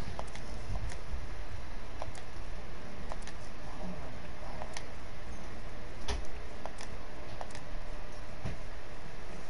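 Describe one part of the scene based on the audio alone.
A game menu clicks softly as selections change.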